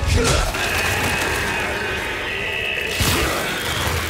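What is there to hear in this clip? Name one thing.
A monster roars with a harsh, rasping screech.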